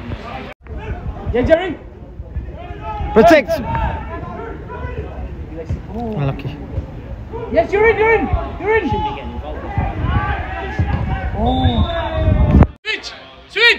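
Young men shout and call out across an outdoor pitch.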